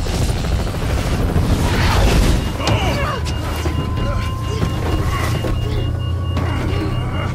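A helicopter engine and rotor drone steadily nearby.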